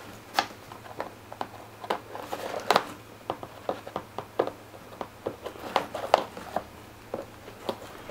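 Scissors snip through tape on a cardboard box.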